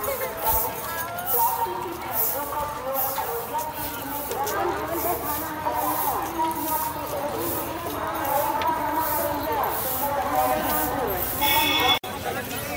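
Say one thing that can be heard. A crowd of men and women talk and chatter close by outdoors.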